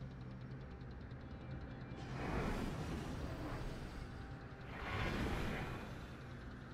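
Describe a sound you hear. A low engine drone hums steadily.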